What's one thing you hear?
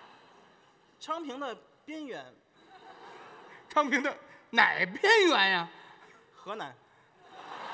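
A man speaks animatedly into a microphone, echoing through a large hall.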